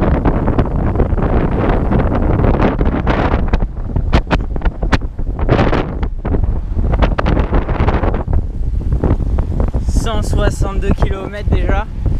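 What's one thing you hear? Wind buffets loudly against a moving bicycle.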